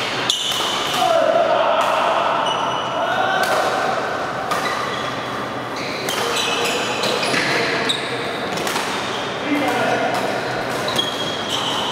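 Badminton rackets smack a shuttlecock now and then in a large echoing hall.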